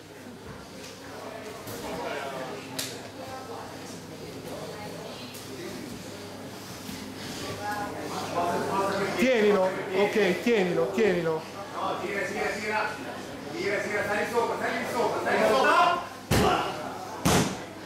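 Bodies thud and shuffle on a padded mat.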